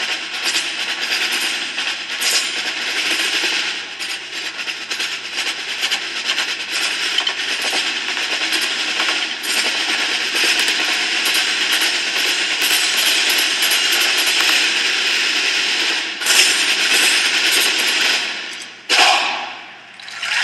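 Marching drums beat a steady rhythm.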